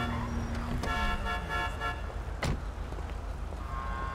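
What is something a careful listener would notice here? A car door thuds shut.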